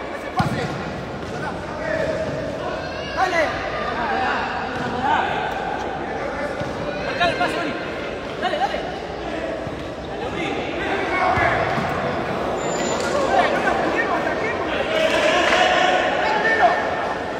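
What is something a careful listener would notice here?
A ball thuds against the floor and players' feet.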